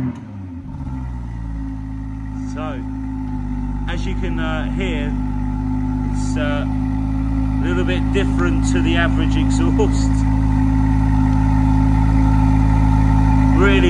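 A car exhaust idles close by with a deep, steady rumble that slowly grows louder.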